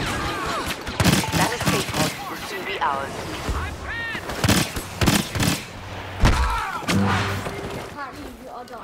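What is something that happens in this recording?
Laser blasters fire in quick bursts of sharp zaps.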